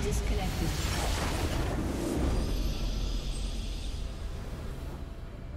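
A game's victory sound bursts loudly, then slowly fades.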